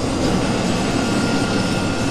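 Aircraft propeller engines roar steadily.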